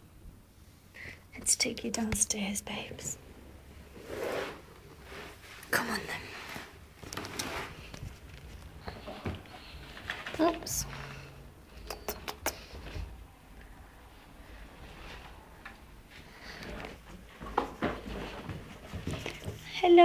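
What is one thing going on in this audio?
Cloth rustles and knocks close by as things are handled.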